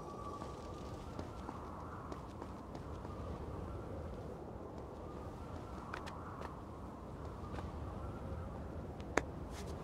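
Light footsteps patter quickly on stone.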